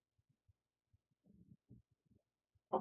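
A loud blast bursts.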